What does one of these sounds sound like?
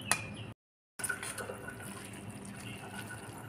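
A fork scrapes inside a bowl.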